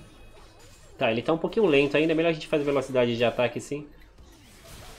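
A young man speaks loudly and with animation into a microphone.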